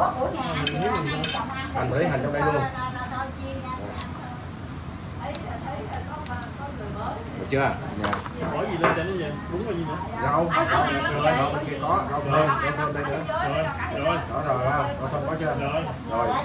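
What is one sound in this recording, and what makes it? Cutlery and dishes clink on a table.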